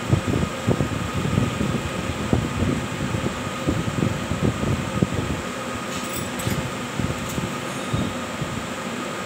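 Metal parts clink and rattle as hands work on a machine.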